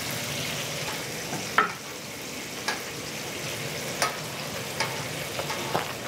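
A metal spatula scrapes and clicks against a griddle.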